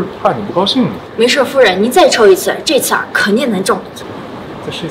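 A young woman answers calmly, close up.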